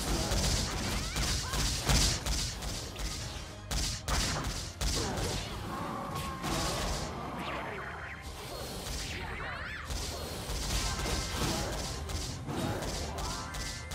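Rapid magical blasts and sword hits crash and clang over and over.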